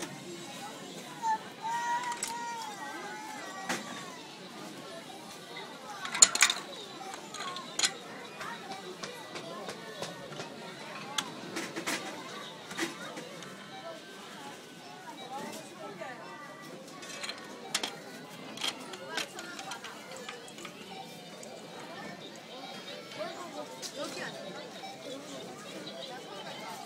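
Plastic toy bricks click and rattle as a small child rummages through them.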